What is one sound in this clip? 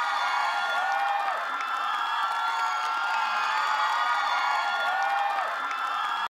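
Upbeat pop music plays loudly over loudspeakers.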